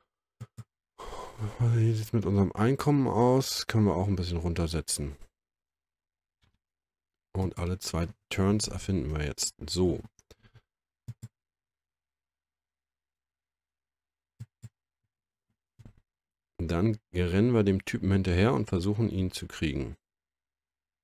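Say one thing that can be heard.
A young man talks calmly and closely into a microphone, in bursts with pauses.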